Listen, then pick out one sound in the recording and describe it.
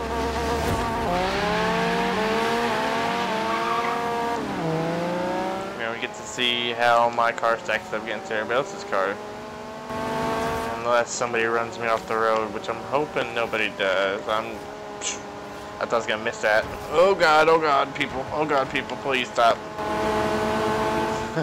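A car engine roars and revs up, climbing in pitch through several gear changes.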